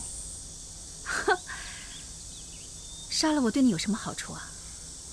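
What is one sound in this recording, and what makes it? A woman speaks in a strained voice.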